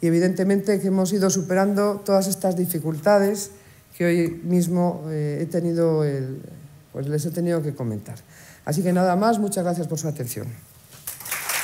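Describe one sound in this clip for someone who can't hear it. A middle-aged woman speaks calmly through a microphone.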